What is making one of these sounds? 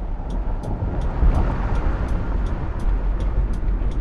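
A car whooshes past close by.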